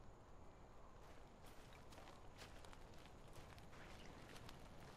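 Footsteps crunch on dry dirt and grass.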